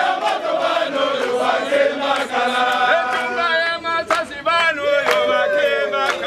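A young man claps his hands rhythmically.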